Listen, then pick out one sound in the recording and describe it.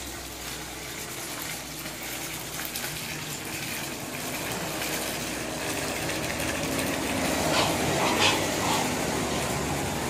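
Water pours from a tap and splashes steadily into a basin.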